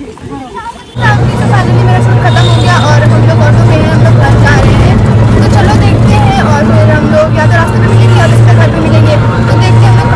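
An electric rickshaw motor hums steadily.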